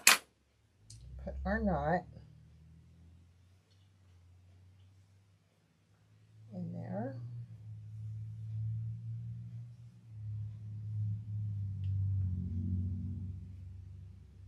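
Small metal pieces click softly in a woman's fingers.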